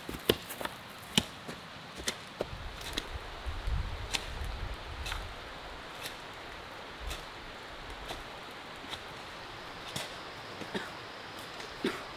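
Rain patters on leaves outdoors, with drops falling now and then.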